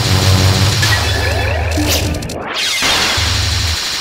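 A bright chime rings out with a sparkling burst.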